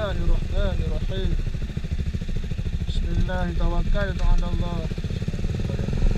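A motorcycle engine revs as it pulls away.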